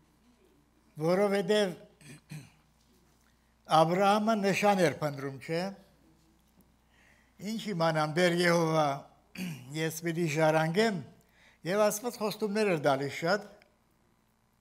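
An elderly man speaks slowly and earnestly through a microphone.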